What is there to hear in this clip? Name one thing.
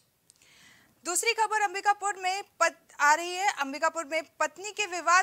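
A young woman reads out news clearly through a microphone.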